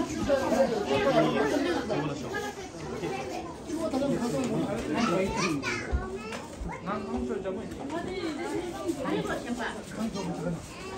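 A crowd of men and women chat nearby.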